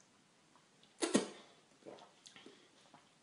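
A young woman gasps and speaks close by after drinking.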